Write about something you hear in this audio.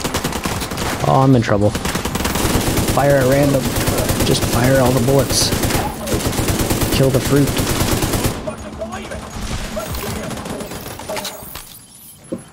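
Automatic gunfire rattles in rapid bursts.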